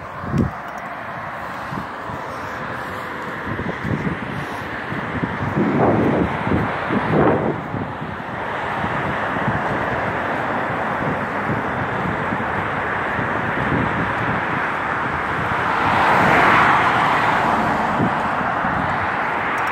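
Cars drive past on a road outdoors.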